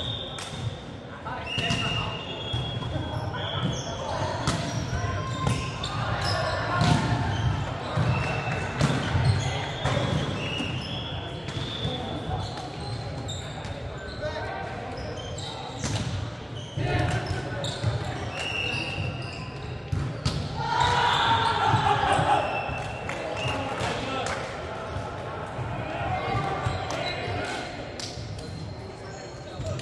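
A volleyball thuds off players' hands.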